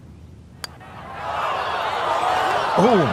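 A crowd cheers and applauds outdoors.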